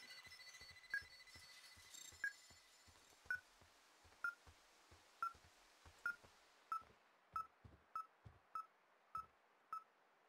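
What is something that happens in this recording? Footsteps thud softly on the ground.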